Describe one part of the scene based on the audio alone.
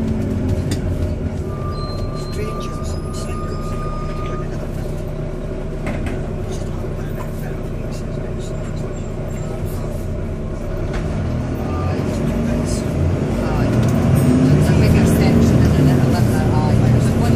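The bus interior rattles and creaks as it moves.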